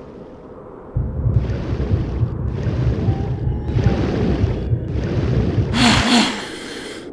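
Water sloshes and splashes as someone swims.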